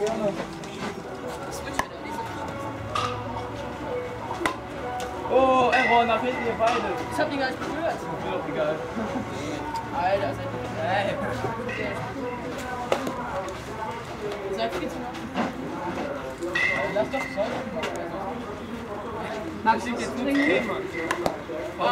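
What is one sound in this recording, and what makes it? Boys call out and talk outdoors.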